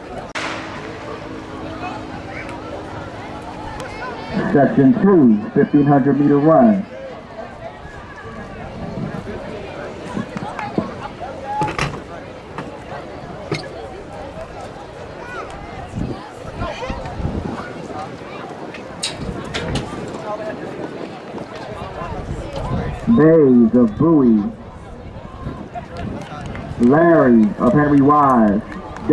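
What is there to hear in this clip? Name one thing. A crowd of spectators cheers and murmurs in the distance outdoors.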